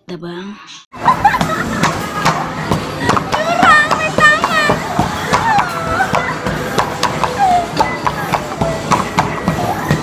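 An arcade game plays electronic jingles and chirping sounds.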